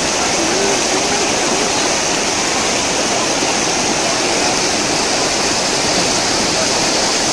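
A shallow river rushes and splashes loudly over rocks nearby.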